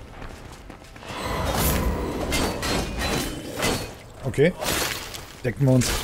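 Metal weapons clash and thud in combat.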